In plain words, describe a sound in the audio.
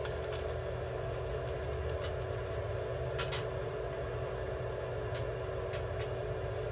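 A small parrot cracks seeds with its beak, with quick little clicks.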